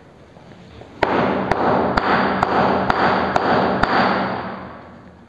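Chalk scratches and taps on a blackboard.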